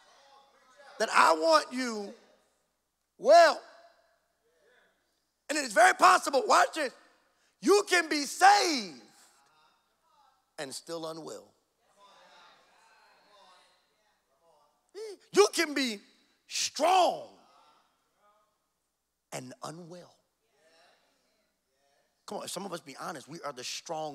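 A man speaks with animation into a microphone over loudspeakers, in bursts with pauses.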